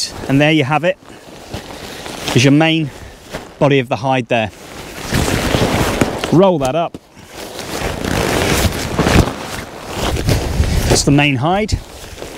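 A foil blanket crinkles and rustles as it is handled.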